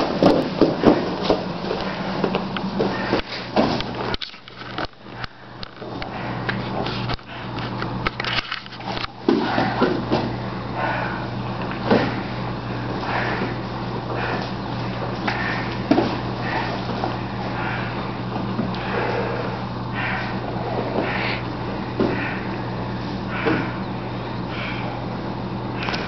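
Bodies thump and shuffle on a padded mat.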